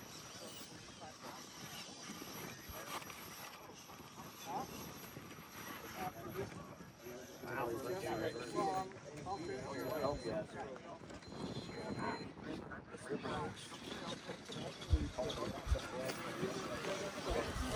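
Small rubber tyres scrape and grip on rock.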